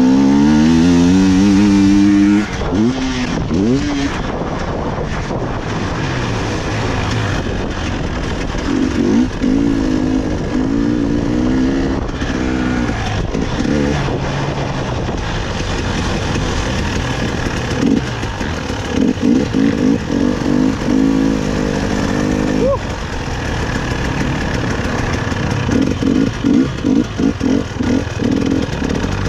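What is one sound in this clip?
A dirt bike engine roars and revs up and down close by.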